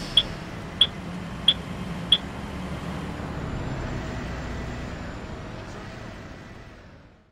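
A bus engine rumbles low as the bus pulls away, then fades out.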